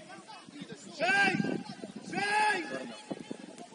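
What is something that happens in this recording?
Young players shout loudly to each other across an open outdoor pitch.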